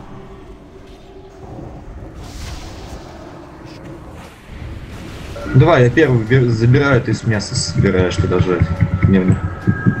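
Magic spells whoosh and crackle in a video game battle.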